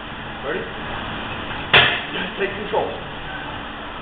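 Heavy weight plates clank as a loaded barbell is lifted from its rack.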